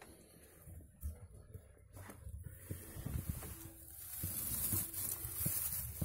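A hand rustles through dry straw.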